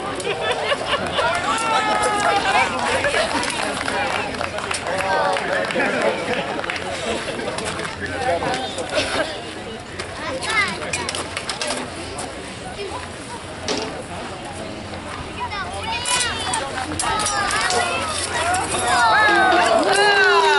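A crowd of onlookers shouts and cheers outdoors.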